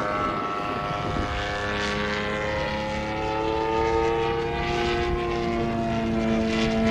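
A small propeller plane engine drones overhead with a steady whine that slowly rises in pitch.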